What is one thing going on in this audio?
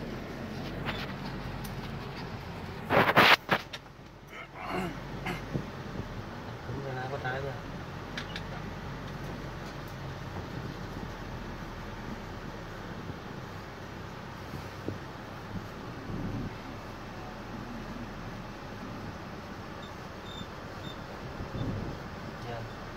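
A vehicle engine hums steadily from inside the cabin.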